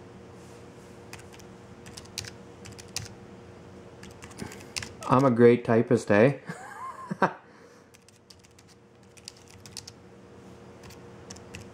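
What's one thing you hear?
Fingers type quickly on a small keyboard with soft clicking keys.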